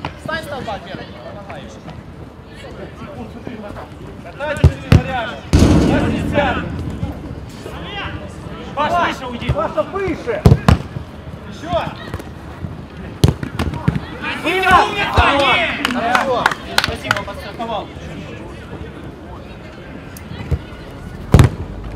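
Men shout to each other outdoors, some near and some across the pitch.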